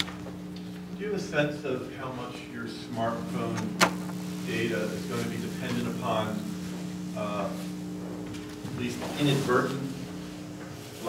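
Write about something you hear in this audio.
A man speaks calmly to an audience in a room with a slight echo.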